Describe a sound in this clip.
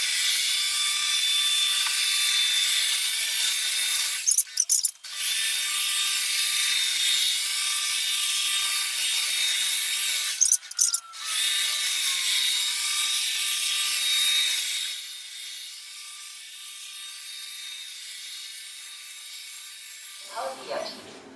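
A robot vacuum cleaner whirs and hums steadily.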